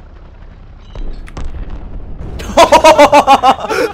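An explosion booms nearby.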